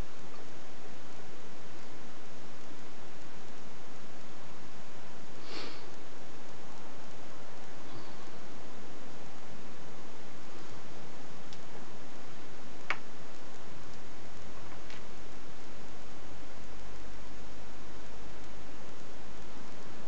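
Lace rustles softly as hands handle it.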